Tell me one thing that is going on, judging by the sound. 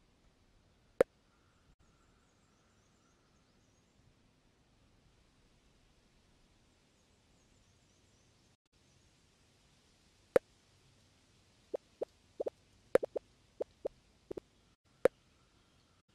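Game menu buttons click sharply now and then.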